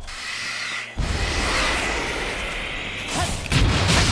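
A video game character dashes with a whooshing rush.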